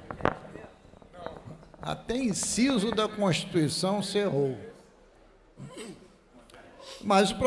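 An older man speaks into a microphone with animation, his voice amplified in a large room.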